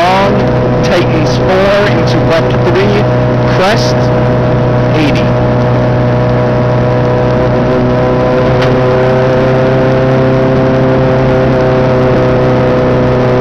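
A rally car engine roars loudly and steadily from inside the cabin.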